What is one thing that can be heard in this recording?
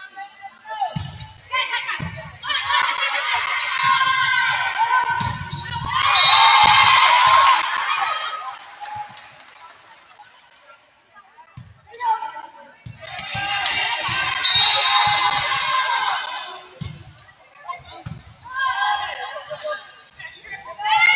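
A crowd cheers and shouts in a large echoing gym.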